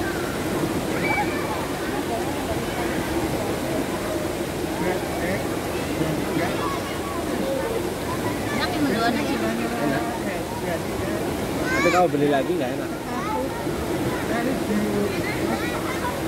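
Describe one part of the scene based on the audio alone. A fountain splashes steadily into a pool.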